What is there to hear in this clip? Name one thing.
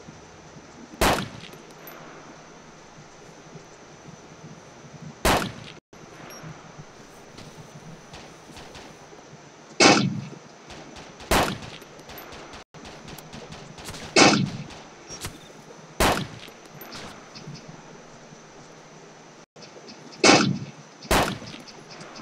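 Rifle shots crack loudly, one at a time, with a short echo after each.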